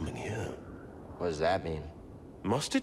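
A young man asks a question calmly.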